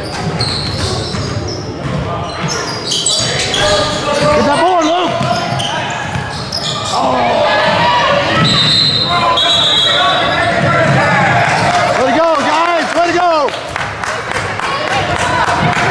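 Young players shout and call out across an echoing hall.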